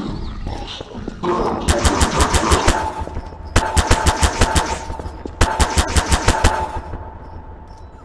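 A tool gun zaps in rapid bursts.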